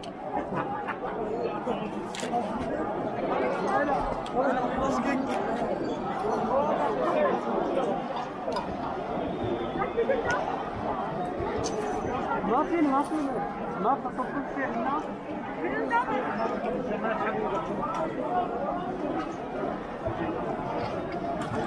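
A crowd of men and women talks and shouts all around, outdoors.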